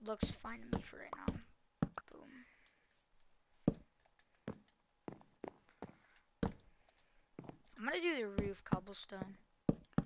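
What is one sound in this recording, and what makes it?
Blocks are set down with short, soft thuds.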